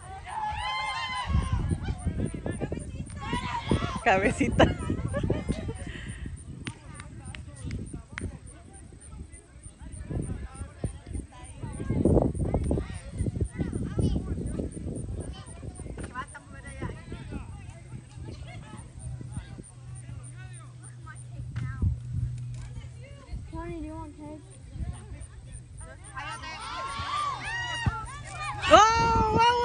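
Men shout to each other in the distance outdoors.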